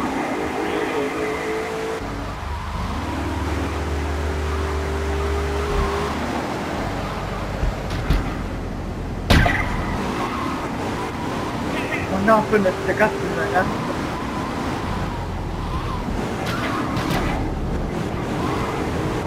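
A car engine roars and revs as it speeds along.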